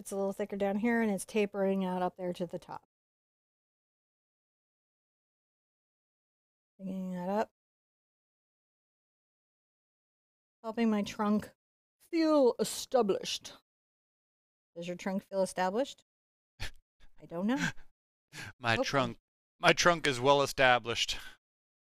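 A woman talks calmly and close to a microphone, in short bursts with pauses.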